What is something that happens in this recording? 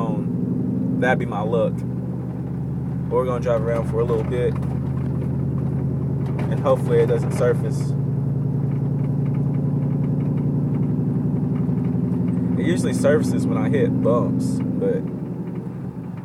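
A car engine hums steadily from inside the car, its pitch rising slightly as it speeds up.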